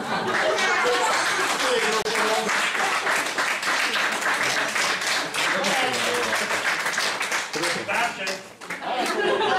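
An audience claps and cheers in a hall.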